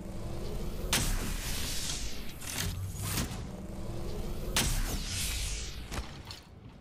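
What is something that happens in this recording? A shield-charging device whirs with a rising electronic whine.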